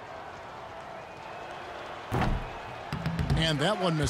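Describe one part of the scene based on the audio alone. A ball hits the rim of a basketball hoop.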